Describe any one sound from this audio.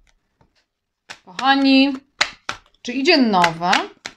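Cards shuffle and rustle in a woman's hands.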